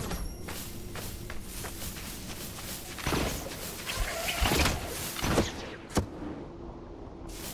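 Quick footsteps patter across the ground.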